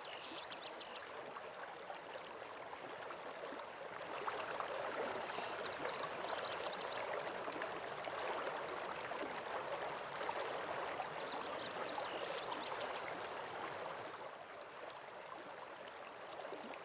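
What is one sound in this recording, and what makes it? Water from a waterfall rushes steadily in the distance.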